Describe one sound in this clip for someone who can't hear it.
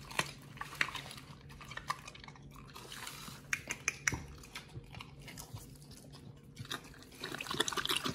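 A dog sniffs and licks at the floor.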